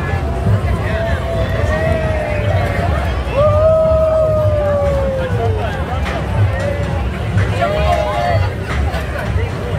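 Men and women in a crowd cheer and whoop.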